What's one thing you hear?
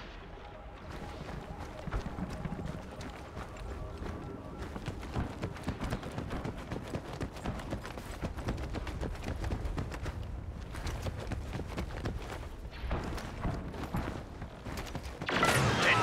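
Footsteps run over rock.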